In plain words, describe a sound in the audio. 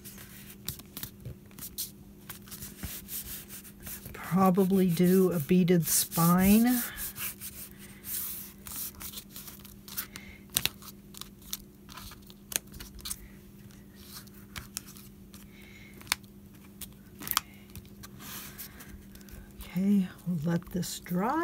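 Hands rub and smooth paper with a soft rustle.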